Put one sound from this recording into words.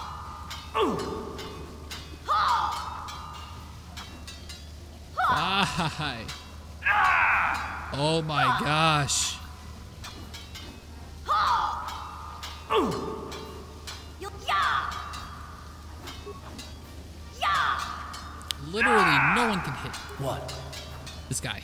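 Swords hum and swish in quick fighting blows.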